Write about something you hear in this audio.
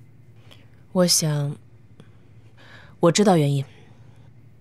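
A young woman speaks calmly and quietly.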